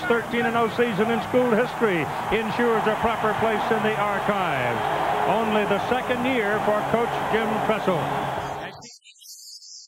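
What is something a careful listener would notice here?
A large crowd cheers loudly in an open stadium.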